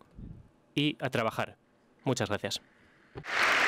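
A man speaks into a microphone in a large hall.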